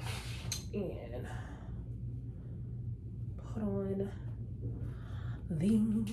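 Fabric rustles as a woman handles a garment.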